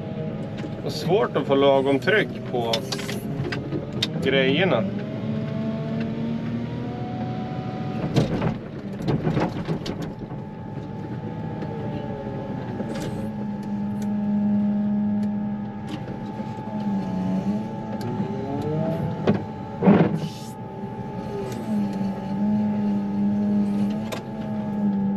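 Hydraulics whine, rising and falling in pitch as the loader's arm moves.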